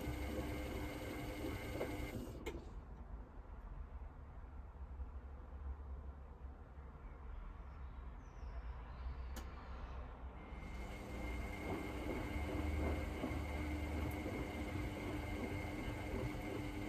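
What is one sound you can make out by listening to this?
A washing machine drum turns with a steady low rumble.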